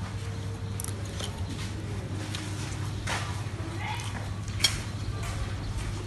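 A young woman chews and smacks her lips while eating.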